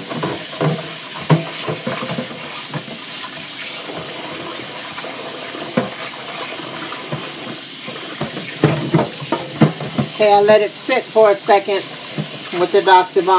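Dishes clink and knock as they are scrubbed.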